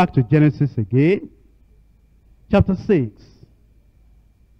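A man preaches forcefully into a microphone, in short bursts.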